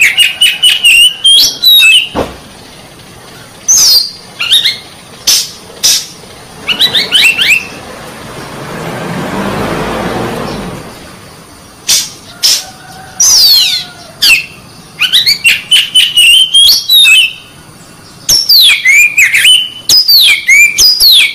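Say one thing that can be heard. A songbird sings loud, varied whistles and chirps close by.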